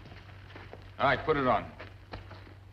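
A man speaks out loudly and firmly nearby.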